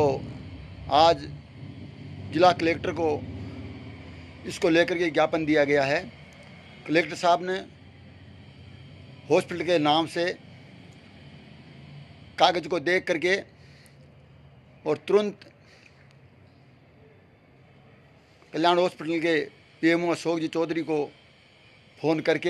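A middle-aged man speaks calmly and close to a microphone, in short bursts with pauses.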